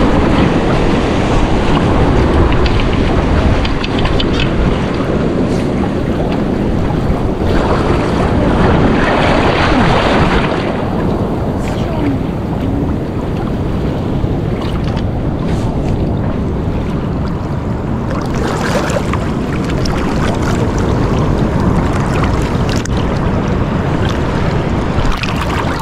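Water splashes around a person wading.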